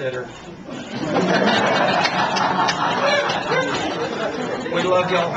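A small crowd laughs and murmurs.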